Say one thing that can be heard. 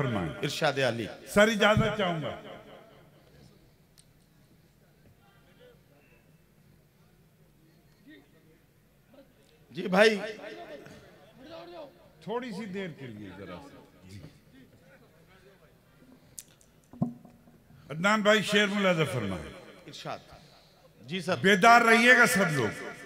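An elderly man recites with feeling into a microphone, his voice carrying through loudspeakers.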